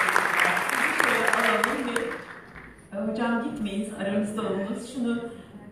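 A woman speaks through a loudspeaker in an echoing hall.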